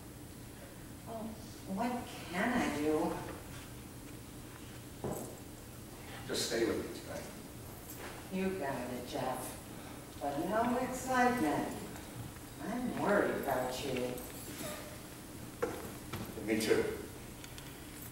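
A man speaks with feeling, heard from an audience.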